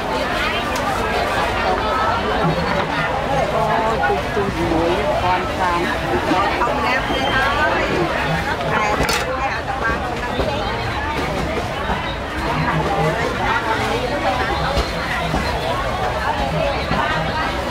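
Leafy greens rustle as a hand sorts through them.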